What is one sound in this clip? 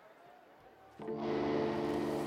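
An electric guitar strikes loud ringing chords through amplifiers.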